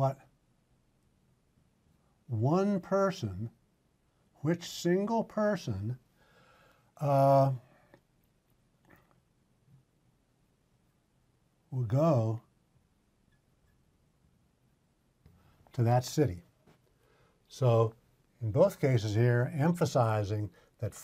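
An older man speaks calmly and clearly into a close microphone, in short phrases with pauses.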